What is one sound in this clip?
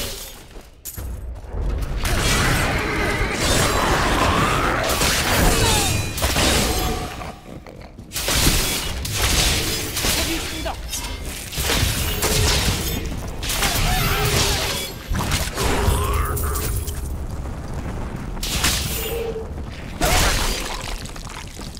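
Spells and magic attacks crackle and burst in a game.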